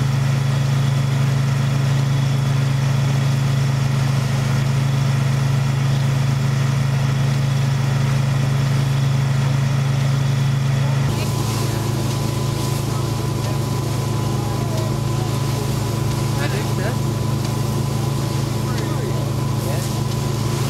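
Straw rustles as pitchforks toss it.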